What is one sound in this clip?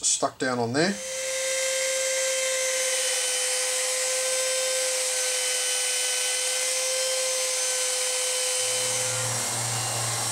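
A router whines steadily as it cuts wood.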